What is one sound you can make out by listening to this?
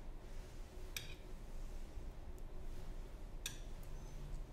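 A metal spoon clinks lightly against a plate.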